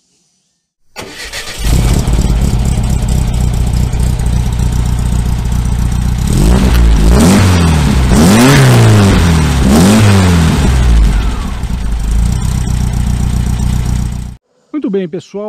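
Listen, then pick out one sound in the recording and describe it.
A vehicle engine rumbles loudly at idle close by.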